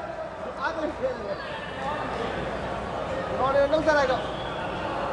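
A low murmur of people fills a large echoing hall.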